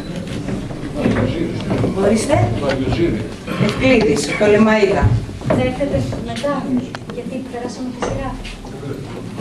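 A woman speaks steadily into a microphone, heard through a loudspeaker.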